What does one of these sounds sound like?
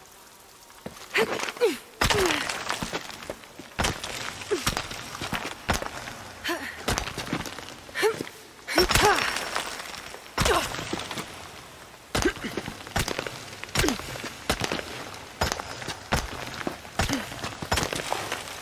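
Hands and feet scrape and knock against rock during a climb.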